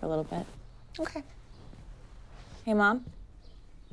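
A young woman answers briefly.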